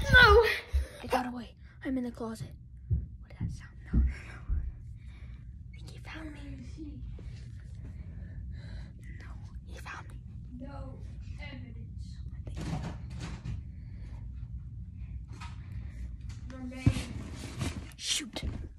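A young boy talks quietly, close to a phone microphone.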